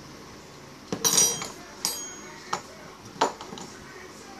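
A metal ring clicks and knocks against a wooden table.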